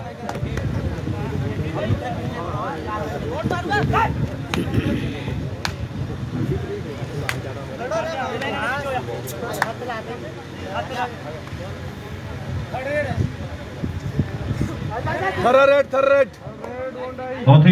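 A crowd murmurs and calls out outdoors.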